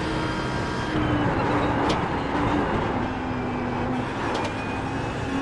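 A racing car's engine drops in pitch and crackles as it slows for a corner.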